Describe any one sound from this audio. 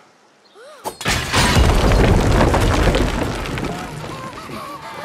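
Footsteps thud and scrape on wooden planks.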